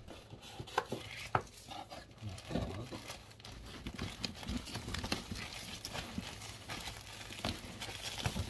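Packing material rustles and thumps during packing.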